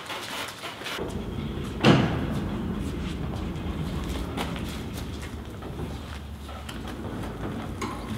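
Caster wheels roll over a concrete floor.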